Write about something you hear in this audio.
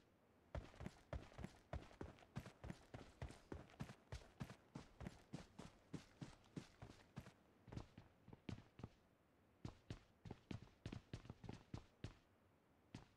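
Quick footsteps run over grass and then across a wooden floor.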